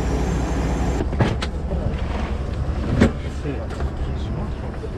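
Air blows steadily from cabin vents.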